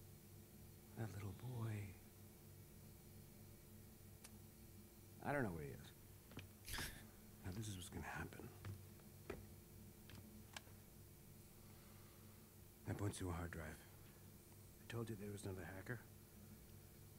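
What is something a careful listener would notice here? An older man answers calmly in a gravelly voice.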